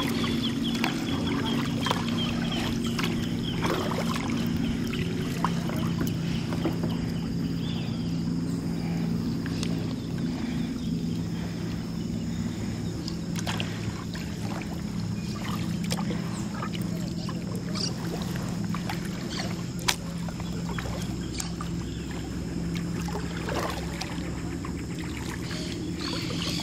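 A kayak paddle dips and splashes in calm water.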